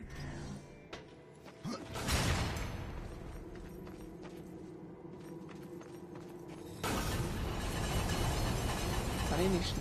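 Heavy footsteps clank on a stone floor.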